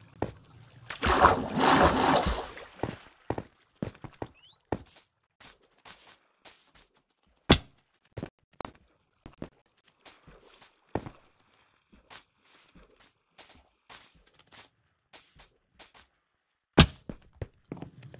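Footsteps thud softly on grass and stone.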